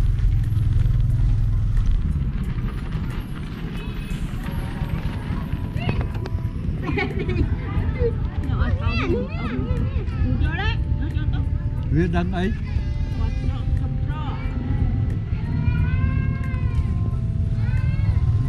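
A motorbike engine idles with a low rumble.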